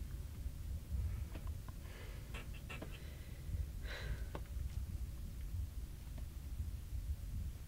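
Phone buttons click softly.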